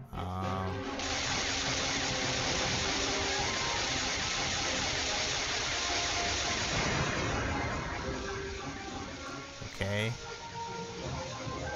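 Laser blasts fire rapidly.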